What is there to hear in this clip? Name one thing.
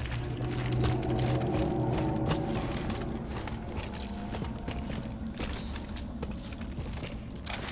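Heavy boots step on a hard floor.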